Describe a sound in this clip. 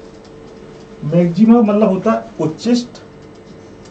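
A man speaks briefly and calmly through a microphone.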